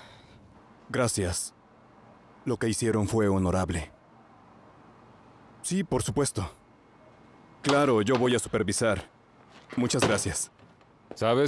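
A man talks on a phone nearby.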